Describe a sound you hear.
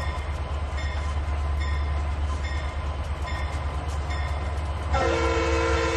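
A locomotive bell rings in a steady, repeating pattern.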